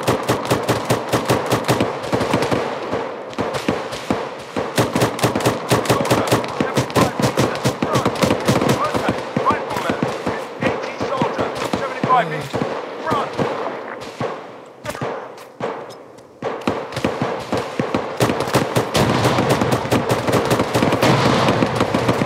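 Rapid gunfire rattles in bursts nearby.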